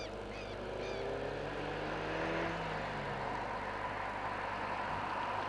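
A car engine hums as the car drives closer.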